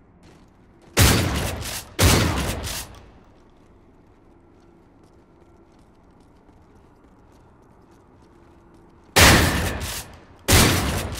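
A rifle fires in loud, short bursts.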